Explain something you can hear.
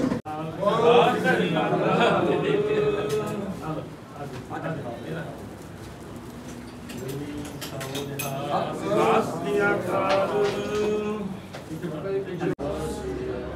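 A man speaks nearby.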